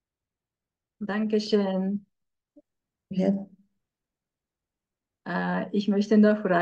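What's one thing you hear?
A woman speaks calmly through a headset microphone over an online call, pausing between phrases.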